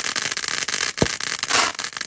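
A firework pops loudly.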